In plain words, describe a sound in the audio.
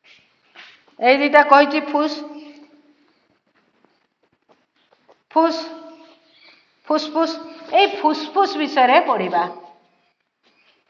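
A woman speaks clearly and calmly nearby, as if teaching.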